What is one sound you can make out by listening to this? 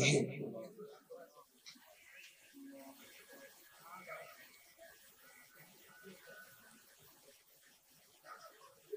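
A man speaks or chants through a microphone and loudspeakers.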